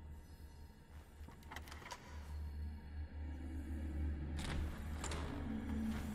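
A metal door knob rattles and clicks.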